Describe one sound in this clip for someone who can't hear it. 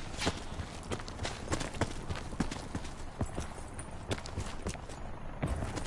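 Quick footsteps thud on dry ground as a runner moves along.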